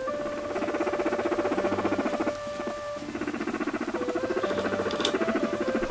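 A guinea pig purrs with a fast, steady rumbling chatter close by.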